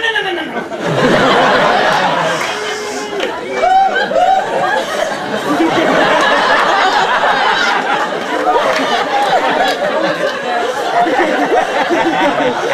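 An audience laughs and cheers loudly.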